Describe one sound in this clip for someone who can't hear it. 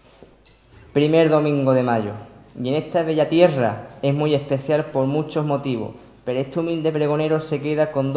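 A young man reads aloud slowly and solemnly into a microphone.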